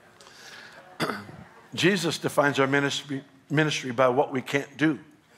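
An older man speaks with emphasis into a microphone.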